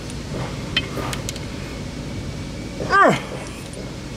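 A wrench clicks against metal parts.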